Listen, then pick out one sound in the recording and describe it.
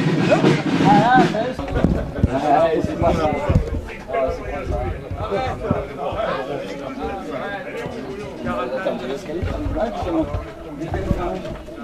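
Adult men talk casually close by.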